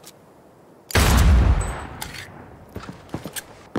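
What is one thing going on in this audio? A gun fires a loud shot that booms and echoes.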